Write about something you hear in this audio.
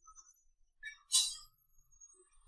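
A cue tip strikes a billiard ball with a sharp click.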